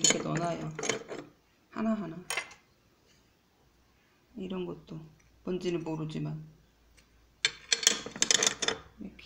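Ceramic pieces clink softly as a hand handles them.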